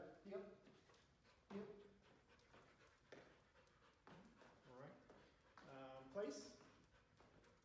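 A man gives short, firm commands to a dog in an echoing room.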